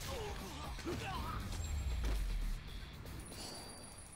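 Heavy punches and kicks thud in a brawl.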